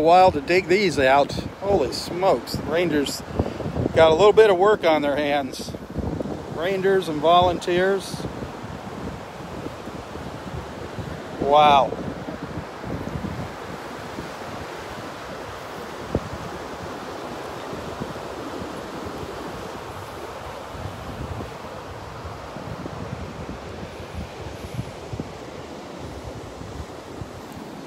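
A steady breeze blows outdoors through beach grass.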